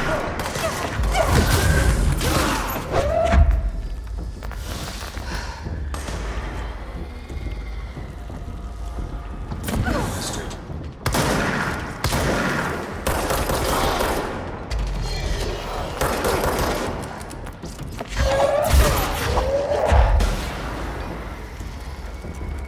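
Heavy objects crash and thud as they are hurled.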